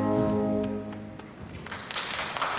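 A brass band plays a final sustained chord in a large hall.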